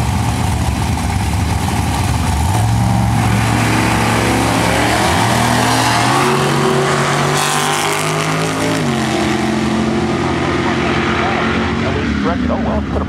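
Drag racing engines roar loudly as cars launch and speed away.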